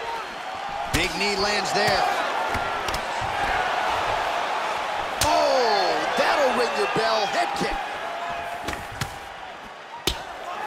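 Blows thud sharply as fighters kick and punch.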